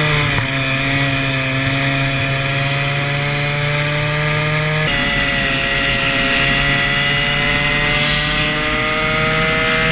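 Wind rushes past at speed.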